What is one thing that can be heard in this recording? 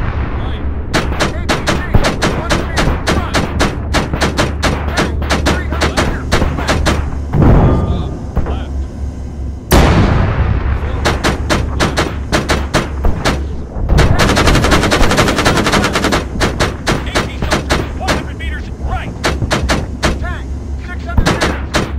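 A heavy cannon fires in rapid bursts.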